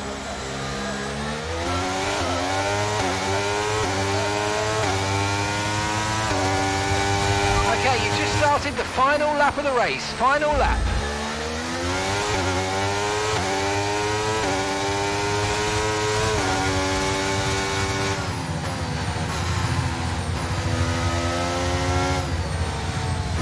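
A racing car engine screams, rising through the gears and dropping in pitch as it slows for corners.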